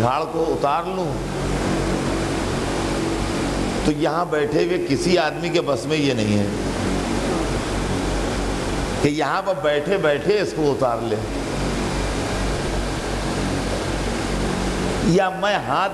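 An elderly man preaches with passion through a microphone, in a hall with echoes.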